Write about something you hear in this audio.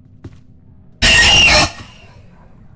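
A loud, harsh screech blares suddenly.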